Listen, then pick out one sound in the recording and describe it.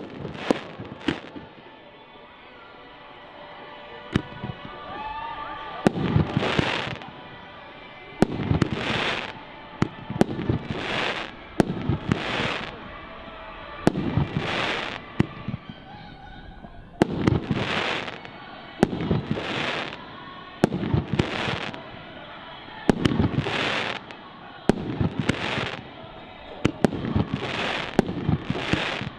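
Fireworks crackle and fizz in the sky after each burst.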